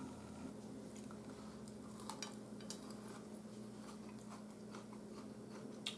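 A man chews food with his mouth close by.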